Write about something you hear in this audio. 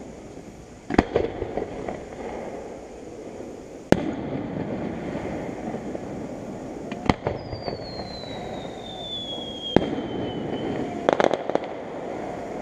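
Fireworks crackle after bursting.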